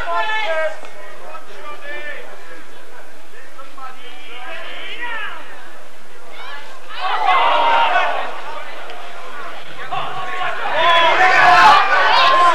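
Men shout to each other across an open rugby pitch.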